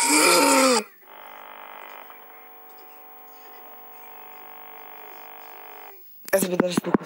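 Electronic static buzzes and hums steadily.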